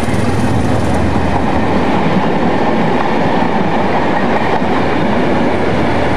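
A diesel train rumbles along the tracks as it pulls away.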